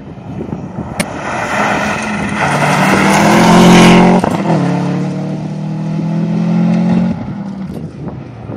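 A Subaru Impreza rally car races past at full throttle on a gravel road.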